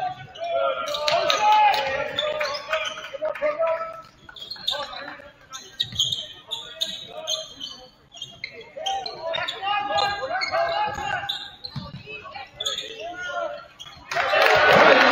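Spectators shout and call out from the stands.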